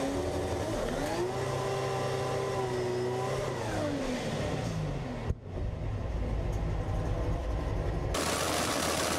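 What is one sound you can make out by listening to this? A race car engine roars loudly up close, revving up and down.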